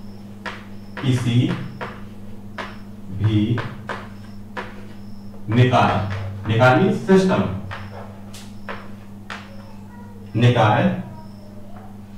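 A man speaks calmly in short bursts, close by.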